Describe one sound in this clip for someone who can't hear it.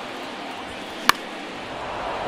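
A baseball bat cracks against a ball.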